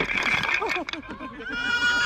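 Wooden blocks tumble and clatter onto grass.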